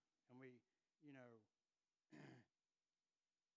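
An elderly man speaks slowly and calmly through a microphone, in short phrases.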